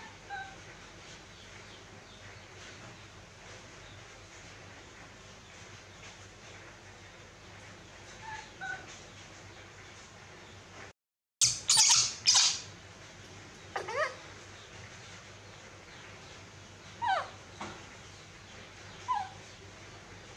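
A baby monkey gives short high squeaks.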